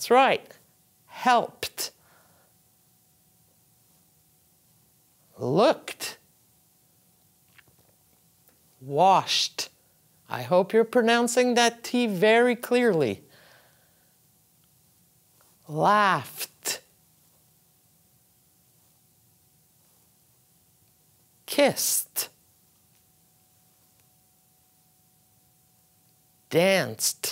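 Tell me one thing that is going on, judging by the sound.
A middle-aged woman speaks clearly and slowly into a close microphone, pausing between short words.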